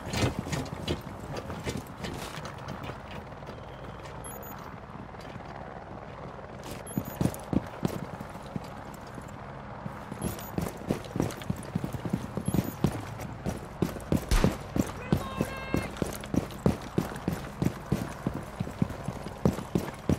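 Footsteps thud quickly and steadily on hard pavement.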